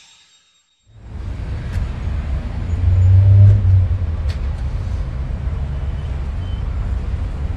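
A bus engine rumbles at idle nearby.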